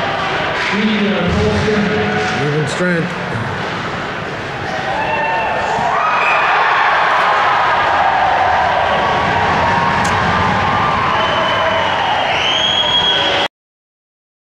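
A crowd cheers and shouts in a large echoing rink.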